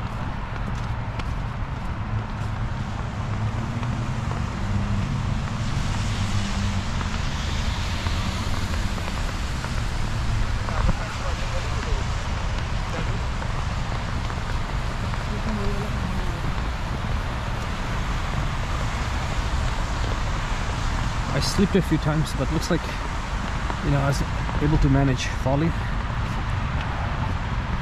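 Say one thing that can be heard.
Footsteps crunch steadily through fresh snow.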